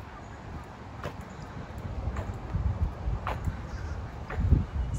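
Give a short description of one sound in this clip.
Slow footsteps scuff on pavement.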